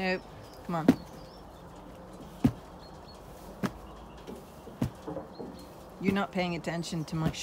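A lamb bleats close by, over and over.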